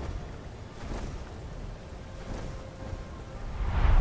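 Large wings beat heavily overhead.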